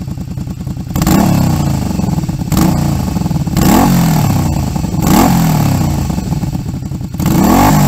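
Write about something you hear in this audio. A motorcycle engine revs up sharply through a loud exhaust, again and again, and drops back.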